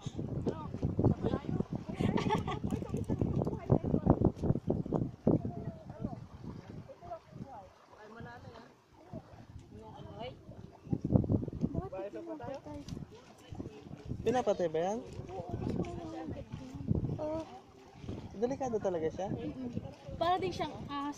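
Shallow water ripples softly over sand.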